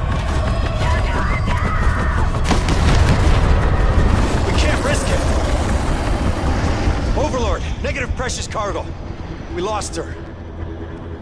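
A helicopter's rotor roars and rumbles close by.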